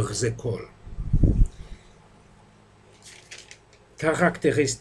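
Paper crinkles and rustles in a man's hands.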